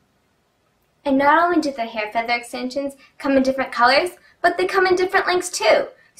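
A young woman talks brightly and clearly into a close microphone.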